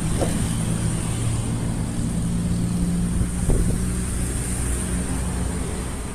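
A car drives past slowly.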